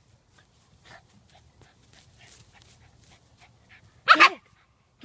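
A cat scratches and digs in dry grass.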